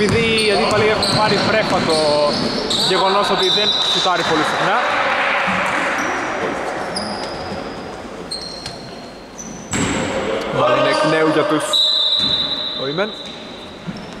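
Men call out to each other across the hall.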